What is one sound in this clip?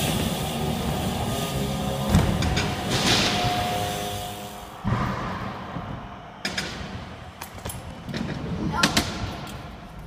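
Bike tyres roll and hum on wooden ramps in a large echoing hall.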